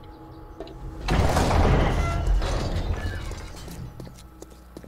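Footsteps thud on wooden rungs while climbing a ladder.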